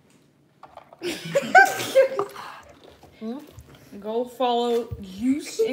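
A young girl laughs and squeals.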